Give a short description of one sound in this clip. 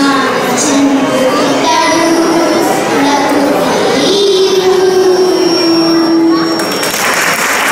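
Young girls sing together through microphones and loudspeakers.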